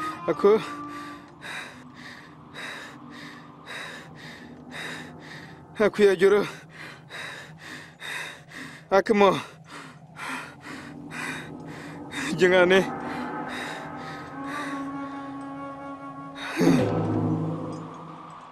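A man cries out in anguish, loud and close, in short strained bursts.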